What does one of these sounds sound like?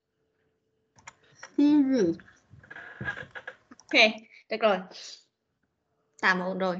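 A woman speaks clearly and slowly through an online call, as if reading out.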